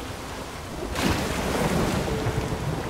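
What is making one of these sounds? A man dives into the water with a loud splash.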